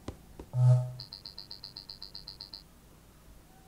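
A rapid string of soft electronic blips plays.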